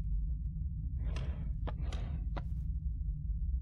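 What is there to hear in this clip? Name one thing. A wooden drawer slides shut with a soft thump.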